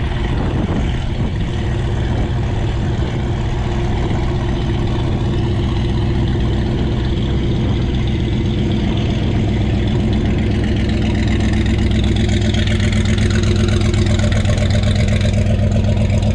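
A loud truck engine idles close by with a deep, lumpy rumble that grows louder.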